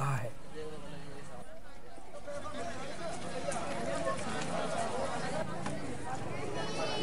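A crowd of men talk and shout over one another outdoors.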